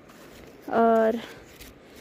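Paper crinkles as it is unfolded.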